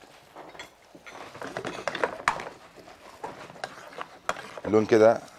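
A utensil scrapes and clinks in a pan.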